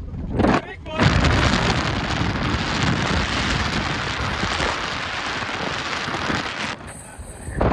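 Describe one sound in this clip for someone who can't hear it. Wind rushes loudly past an open car window.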